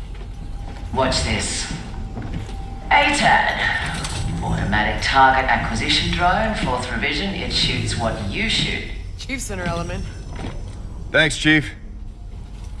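A man speaks calmly.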